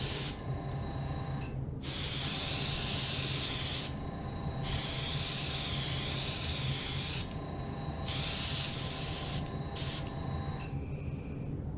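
An airbrush hisses in loud bursts of spray.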